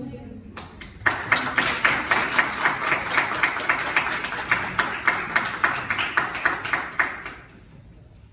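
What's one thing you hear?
A group of people applaud together.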